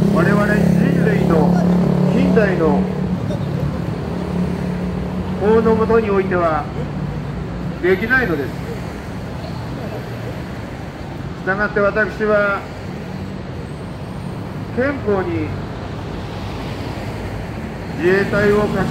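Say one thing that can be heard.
An elderly man speaks loudly through a microphone in short phrases with pauses.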